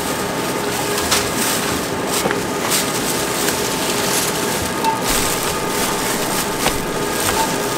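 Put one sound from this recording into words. Plastic shopping bags rustle.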